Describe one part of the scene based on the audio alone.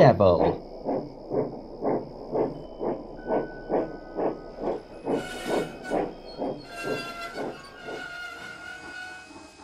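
A steam engine chuffs steadily as it approaches.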